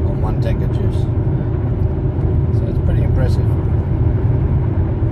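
A car engine hums steadily with road noise inside the car.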